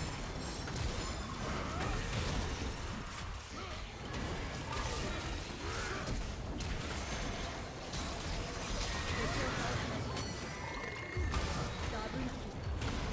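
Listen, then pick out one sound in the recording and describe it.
Game sound effects clash and burst in quick succession.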